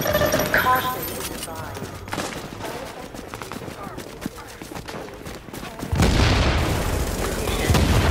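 Footsteps run over snowy ground.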